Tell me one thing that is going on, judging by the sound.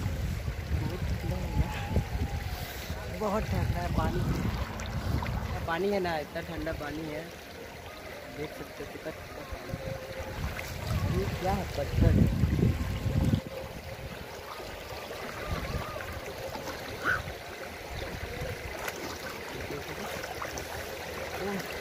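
Water rushes and flows steadily over rocks.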